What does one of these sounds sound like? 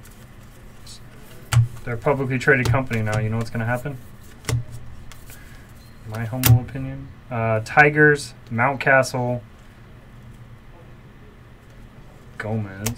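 Trading cards rustle and slide against each other as hands flip through a stack.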